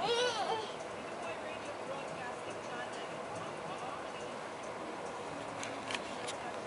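A baby squeals and babbles nearby.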